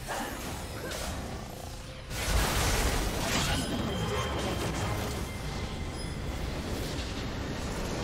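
Magic spells whoosh and crackle in a hectic video game battle.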